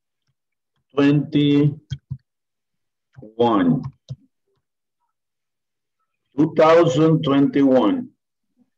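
A man speaks slowly through an online call.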